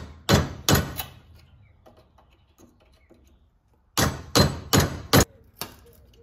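Metal taps sharply on metal in quick bursts.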